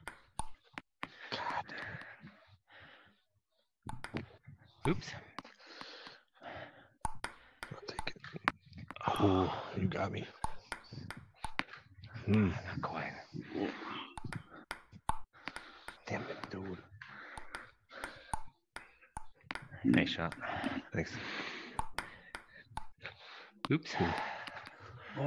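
A ping-pong ball clicks back and forth off paddles and a table.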